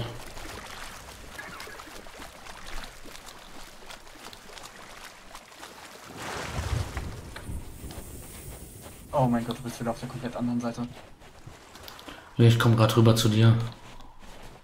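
Gentle waves lap against a sandy shore.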